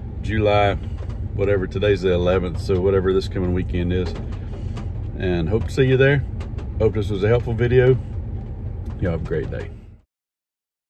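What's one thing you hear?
A middle-aged man talks calmly and close to the microphone.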